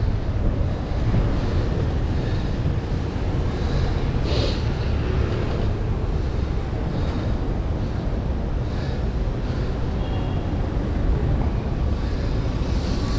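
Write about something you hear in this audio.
Car engines hum in slow city traffic.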